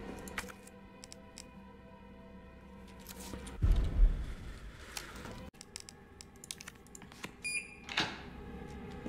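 Short menu clicks and beeps sound now and then.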